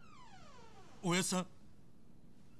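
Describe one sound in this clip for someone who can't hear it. A young man calls out questioningly, close by.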